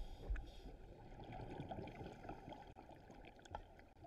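Divers breathe through regulators, with bubbles gurgling and rumbling underwater.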